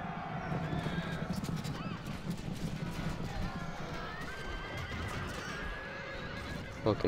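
Horses gallop in a charge.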